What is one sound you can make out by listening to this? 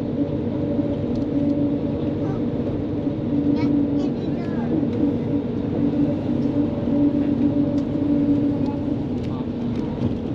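A train hums steadily as it rolls along.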